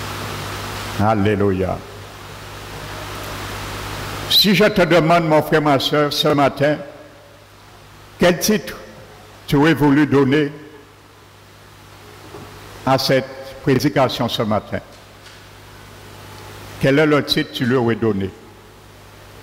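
A middle-aged man speaks calmly through a headset microphone and loudspeakers, in bursts with pauses.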